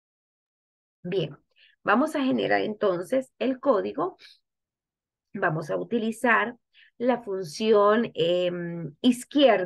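A young woman speaks calmly through a computer microphone.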